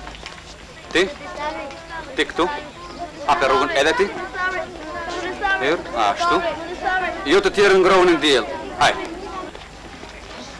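A crowd of children shouts with raised voices.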